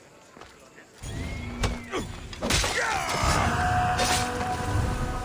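Blades clash and strike in a sudden fight.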